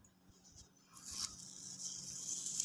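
A sheet of paper rustles and scrapes on a table.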